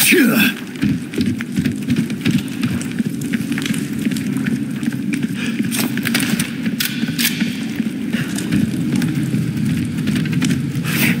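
Footsteps thud on wooden planks and rocky ground.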